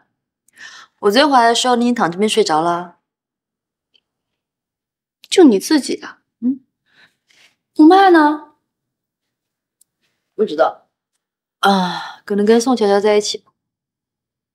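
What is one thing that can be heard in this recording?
A second young woman answers quietly and hesitantly close by.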